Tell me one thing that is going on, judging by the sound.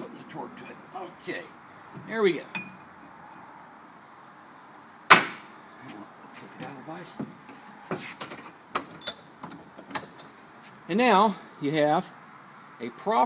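Metal parts clink and knock against each other.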